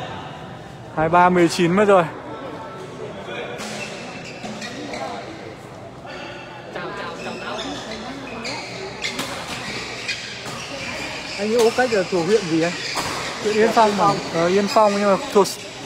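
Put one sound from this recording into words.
A young man shouts loudly in a large echoing hall.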